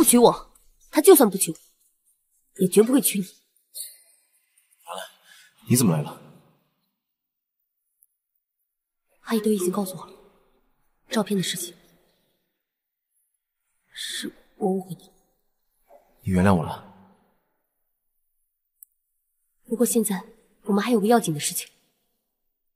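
A young woman speaks in short, emotional bursts close by.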